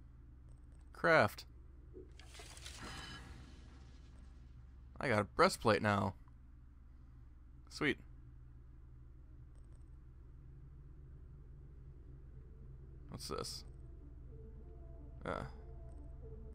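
Game menu sounds whoosh and chime.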